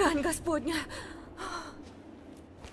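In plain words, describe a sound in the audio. A young woman exclaims in alarm.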